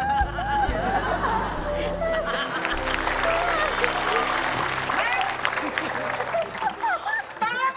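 A band plays a short upbeat tune.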